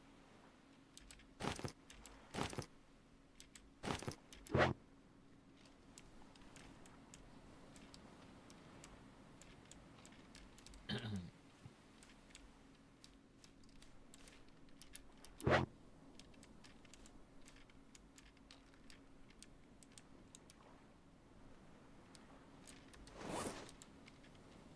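Footsteps rustle through grass and leafy bushes.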